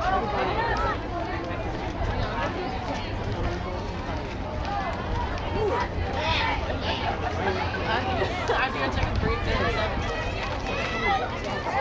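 A crowd of players and spectators chatters and calls out outdoors.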